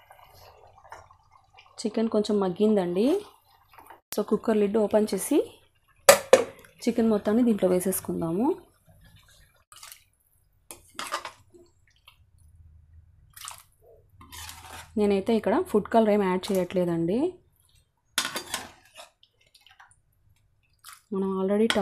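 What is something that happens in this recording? A metal spoon scrapes and clinks against a pot.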